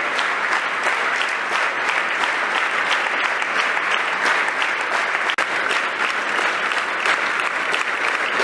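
A large crowd sings together loudly in an echoing hall.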